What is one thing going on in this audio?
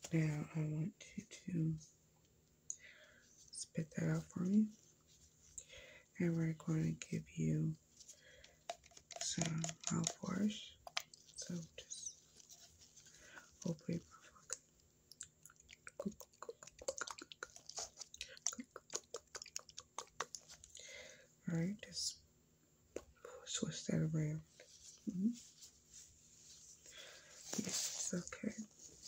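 A young woman talks softly and closely into a microphone, pausing often.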